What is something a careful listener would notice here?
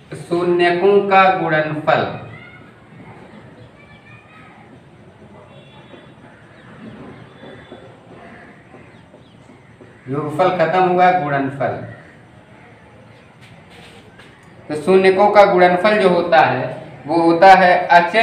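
A young man speaks clearly and calmly, as if explaining a lesson.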